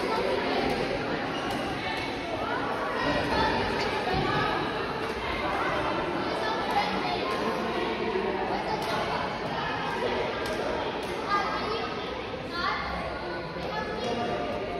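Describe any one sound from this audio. Shoes squeak and patter on a sports floor.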